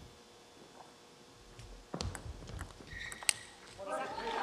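A table tennis ball clicks sharply off paddles and the table in a quick rally.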